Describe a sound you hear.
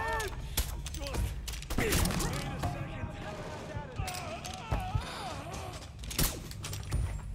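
Pistol shots crack sharply.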